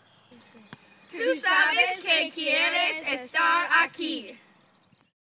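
Several children speak together in unison, close by.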